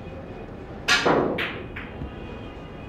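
Billiard balls clack sharply together.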